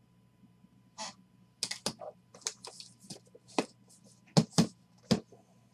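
Metal latches click on a case.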